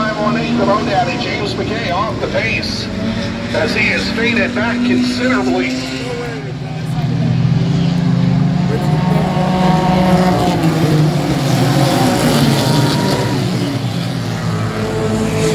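Race car engines roar loudly as cars speed around a track, growing louder as they pass close by.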